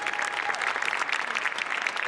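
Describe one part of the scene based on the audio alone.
A woman claps her hands.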